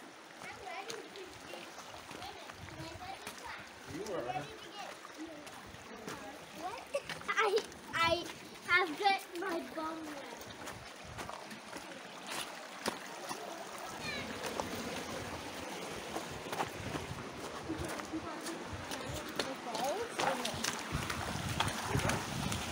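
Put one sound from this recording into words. Footsteps crunch on wet rock and gravel.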